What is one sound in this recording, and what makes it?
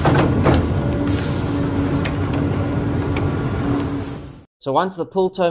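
A machine whirs and clatters loudly with a steady hum.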